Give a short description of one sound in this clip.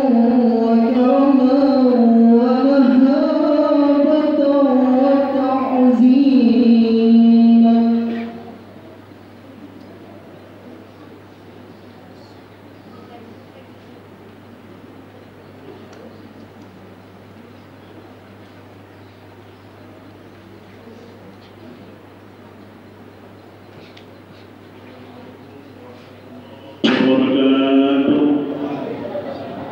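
A man chants in a drawn-out, melodic voice through a loudspeaker in a large echoing hall.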